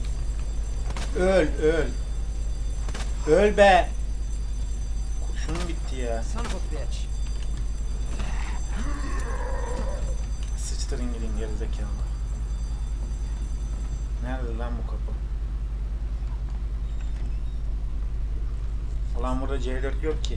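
A young man talks into a microphone up close, in short bursts with pauses.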